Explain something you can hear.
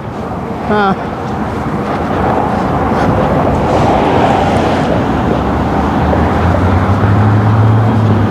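Wind blows across a microphone outdoors.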